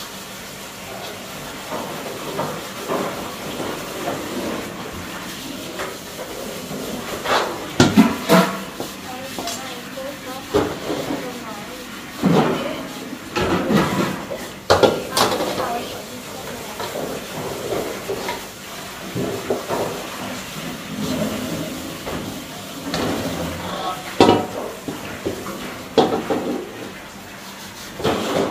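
A metal wok scrapes and clanks as it is scrubbed.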